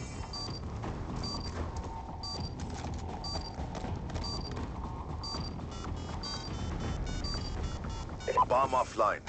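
An electronic device beeps at a steady, quick pace.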